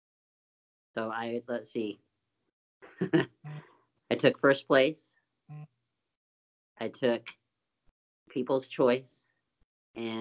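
A middle-aged man speaks in short bursts over an online call.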